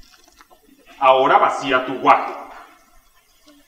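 A man shouts loudly in a large hall.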